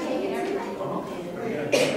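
A woman speaks calmly close by.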